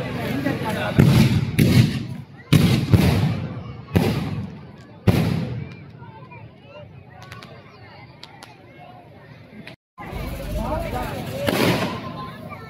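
Fireworks explode with loud booming bangs.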